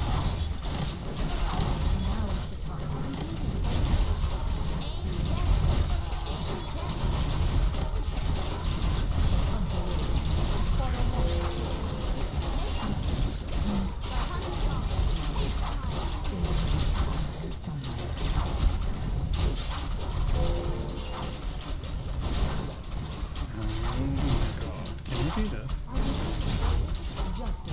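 Game battle sounds of clashing weapons and spells ring out throughout.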